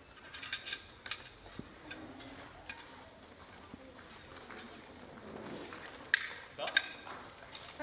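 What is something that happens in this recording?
Dishes and glasses clink softly.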